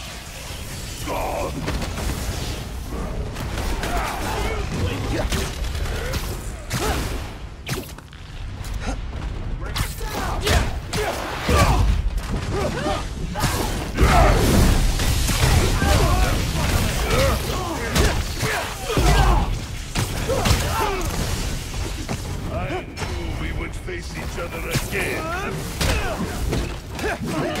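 Punches and kicks land with heavy thuds in a fast fight.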